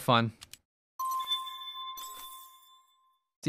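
A bright electronic chime rings out and slowly fades.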